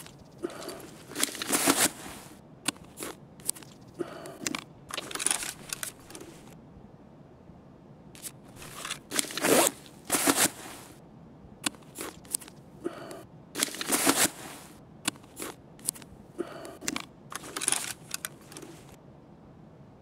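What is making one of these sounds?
Gear rustles and clicks in short bursts as items are handled.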